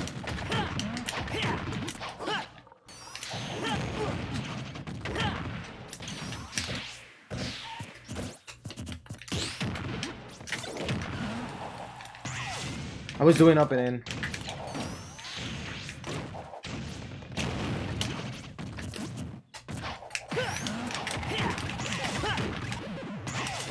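Video game fighters' hits and blasts crack and boom.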